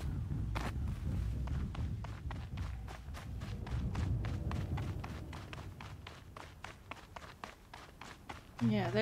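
Footsteps patter quickly over dirt and rock.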